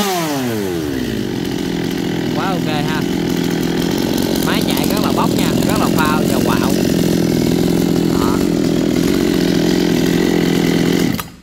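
A chainsaw engine idles with a steady, loud drone.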